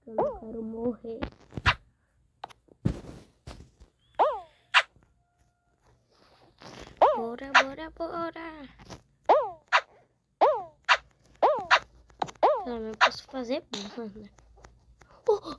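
Short, bouncy game sound effects play as cartoon figures run and jump.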